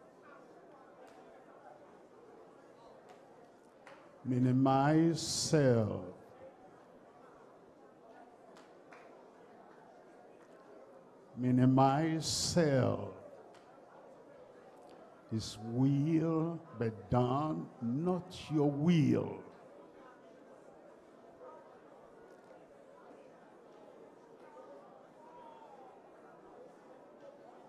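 A crowd sings together in a large hall.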